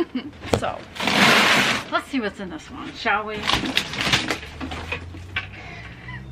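Cardboard flaps rustle and crinkle as a box is opened.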